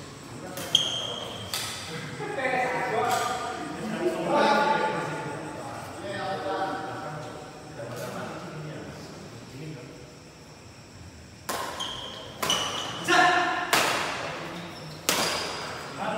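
Badminton rackets strike a shuttlecock with sharp pops, echoing in a large hall.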